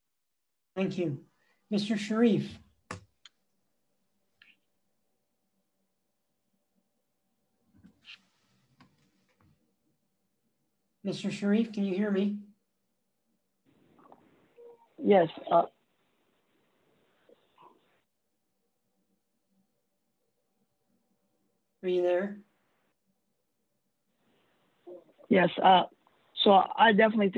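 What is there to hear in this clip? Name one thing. A middle-aged man speaks calmly in short bursts over an online call.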